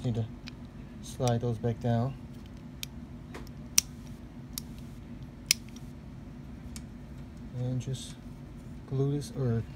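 Plastic parts click and tap as they are handled.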